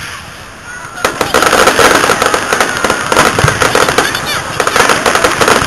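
Crackling fireworks fizz and pop rapidly.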